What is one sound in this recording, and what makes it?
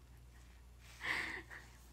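A young woman laughs behind her hand.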